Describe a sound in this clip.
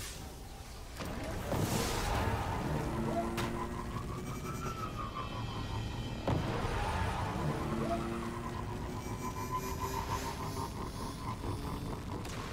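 A hover bike engine whirs and revs.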